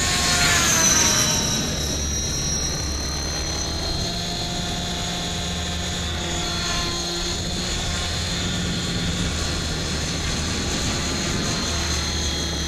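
A model helicopter's engine whines steadily overhead, rising and falling in pitch.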